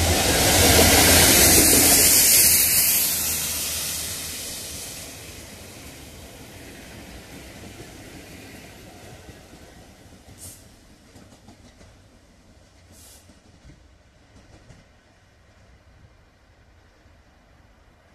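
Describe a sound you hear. A Class 66 diesel freight locomotive roars past close by and fades into the distance.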